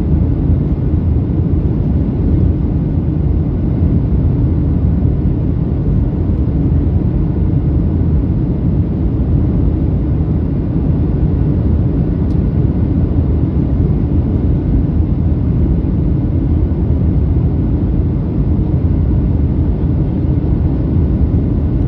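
Jet engines roar steadily inside an aircraft cabin.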